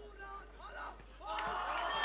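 Boxing gloves thud against a fighter.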